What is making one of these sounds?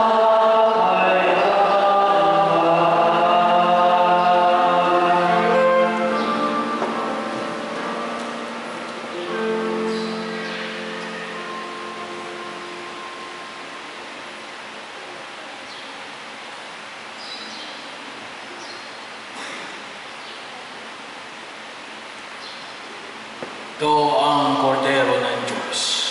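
A man sings a chant through a microphone, echoing in a large hall.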